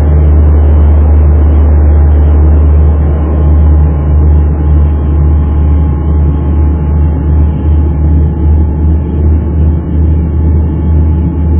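Aircraft engines drone loudly and steadily from close by.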